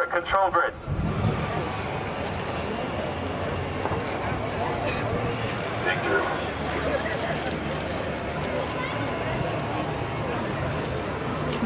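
A crowd murmurs outdoors in wind.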